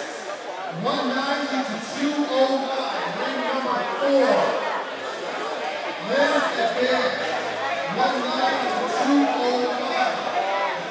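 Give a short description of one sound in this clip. Several men shout instructions loudly in a large echoing hall.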